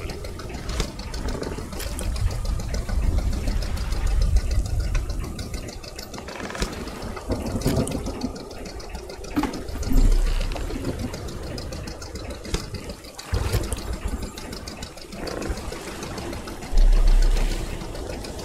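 A fishing reel clicks as a line is wound in.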